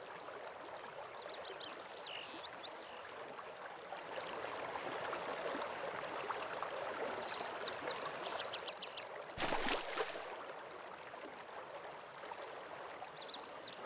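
A waterfall rushes steadily in the distance.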